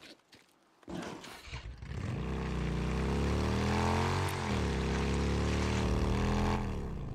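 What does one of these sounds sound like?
A motorcycle engine rumbles and revs.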